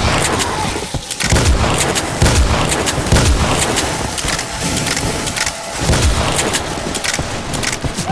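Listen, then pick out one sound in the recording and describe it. A shotgun is reloaded with metallic clicks.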